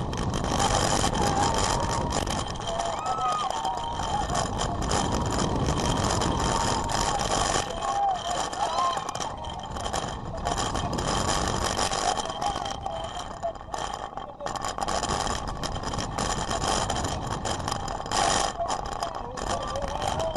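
Riders scream and shriek in the distance.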